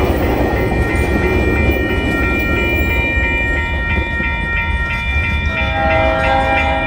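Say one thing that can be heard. A level crossing bell rings rapidly and steadily.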